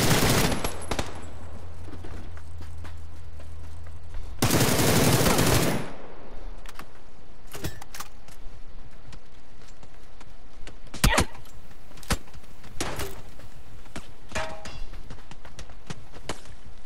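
Footsteps run on dirt.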